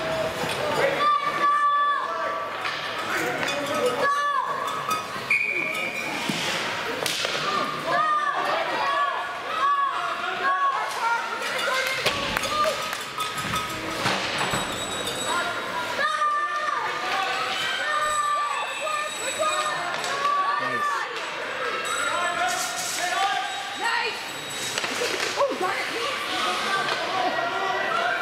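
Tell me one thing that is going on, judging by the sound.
Skates scrape and carve across ice in a large echoing arena.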